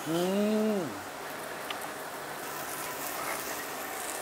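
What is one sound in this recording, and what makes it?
Meat sizzles on a grill.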